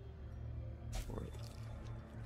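A bright magical shimmer rings out.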